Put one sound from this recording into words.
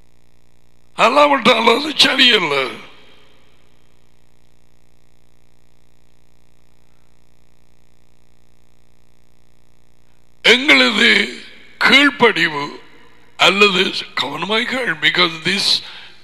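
A man speaks with animation, close to a headset microphone, pausing at length between phrases.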